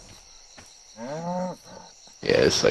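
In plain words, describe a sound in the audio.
A large beast gives a short, groaning call.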